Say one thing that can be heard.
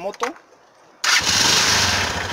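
A motorcycle engine starts up and runs with a loud, rough rumble.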